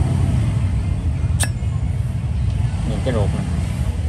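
A metal lighter insert slides out of its case.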